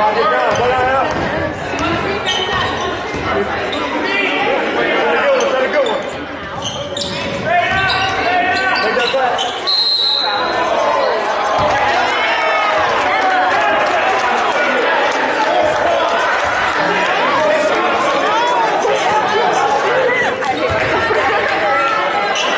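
A crowd in a large echoing gym cheers and chatters.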